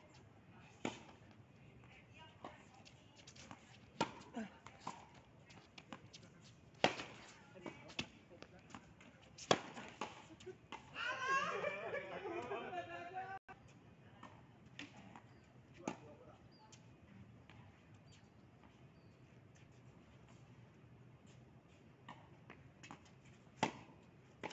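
A tennis racket strikes a ball.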